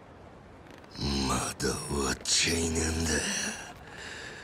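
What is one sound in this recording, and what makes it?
A man growls threats in a low, strained voice.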